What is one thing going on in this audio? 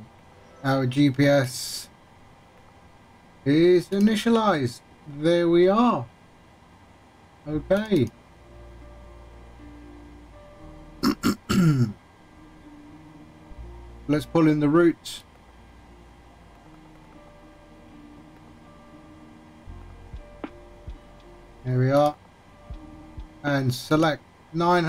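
A young man talks casually into a close microphone, in short bursts.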